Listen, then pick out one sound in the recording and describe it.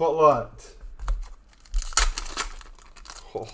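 A foil card pack crinkles as hands tear it open.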